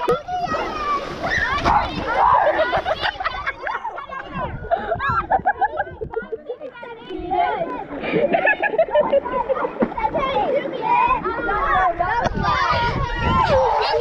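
Children shout and laugh in water nearby.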